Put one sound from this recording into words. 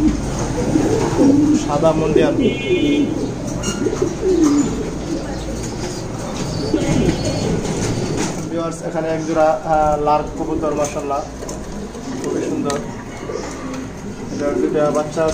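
Pigeons coo in low, warbling murmurs.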